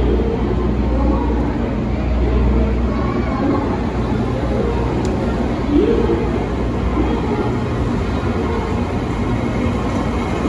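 A crowd murmurs in a large echoing station.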